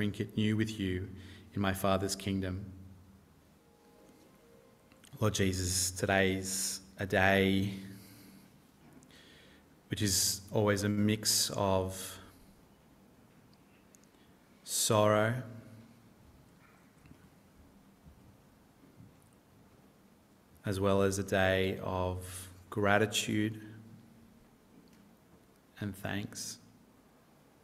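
A man speaks slowly and calmly through a microphone in a large room, with long pauses.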